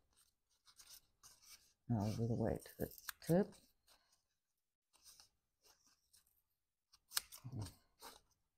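Scissors snip through thin foam sheet.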